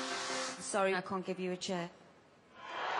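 A young woman speaks with emotion into a microphone.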